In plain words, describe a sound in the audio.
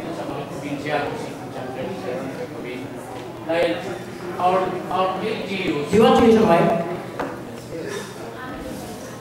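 A man speaks with animation into a microphone, heard through loudspeakers in an echoing room.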